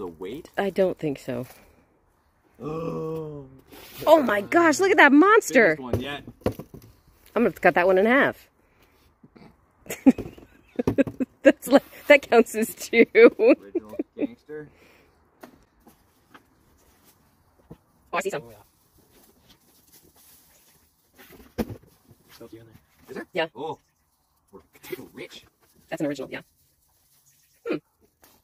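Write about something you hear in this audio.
Dry roots and soil rustle and crackle as they are pulled apart.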